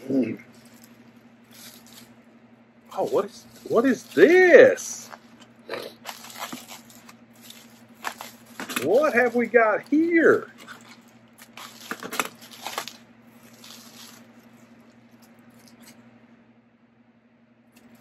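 Plastic wrapping crinkles and rustles as it is pulled open.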